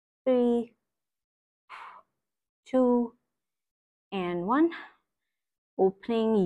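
A young woman speaks calmly nearby in short phrases.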